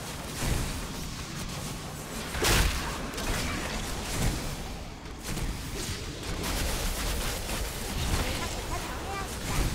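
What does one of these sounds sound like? Magic spells crackle and burst in a fast battle.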